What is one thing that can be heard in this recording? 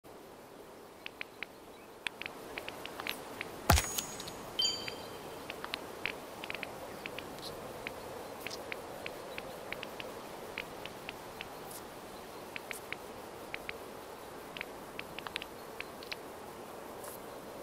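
Short soft clicks tick as menu options are selected.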